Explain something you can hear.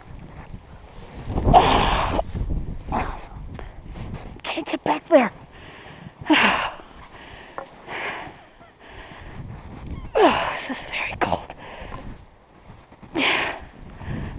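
Boots crunch and squeak through deep snow.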